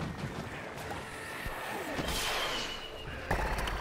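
Small explosions burst with a sparkling crackle.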